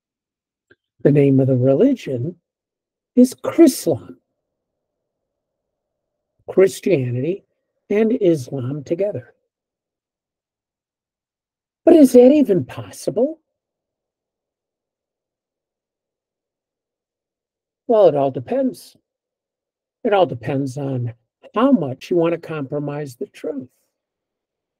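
An elderly man speaks calmly in short bursts, heard close through a computer microphone.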